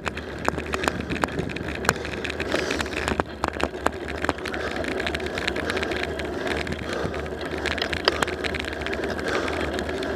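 Tyres roll over asphalt with a steady hum.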